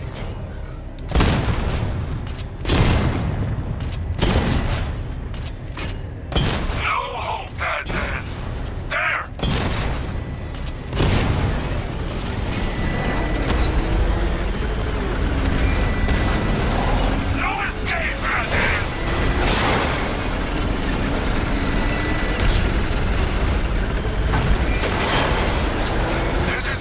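A vehicle engine roars and rumbles steadily.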